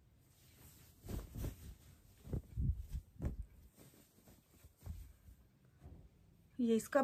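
Fabric rustles and flaps as hands handle cloth.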